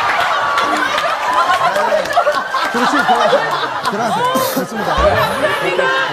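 A young woman laughs excitedly.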